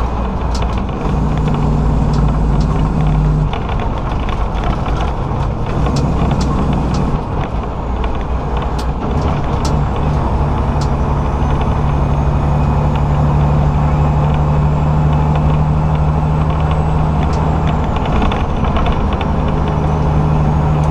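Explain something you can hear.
A vehicle's engine hums steadily from inside as it drives.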